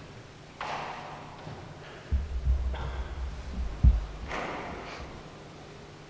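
An elderly man speaks slowly into a microphone in a large echoing hall.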